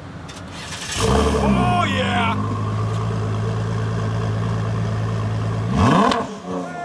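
A sports car engine starts with a loud bark and idles with a deep rumble.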